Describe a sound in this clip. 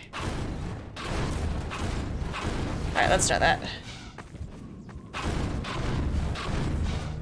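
A zapping energy beam crackles in bursts.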